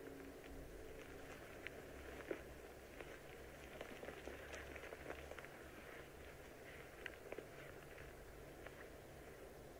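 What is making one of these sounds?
Footsteps crunch on twigs and dry forest ground.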